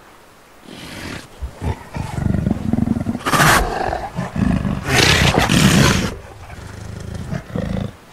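A big cat growls low and deep.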